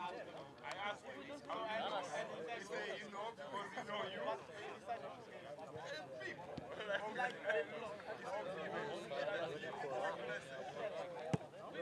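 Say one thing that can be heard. Young men talk and laugh together close by, outdoors.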